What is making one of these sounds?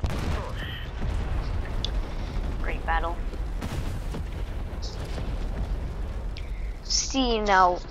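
Fire roars and crackles after the explosion.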